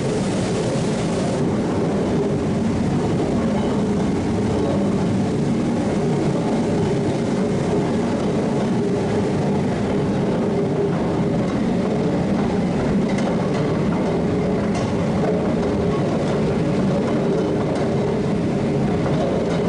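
Heavy machinery rumbles and churns steadily.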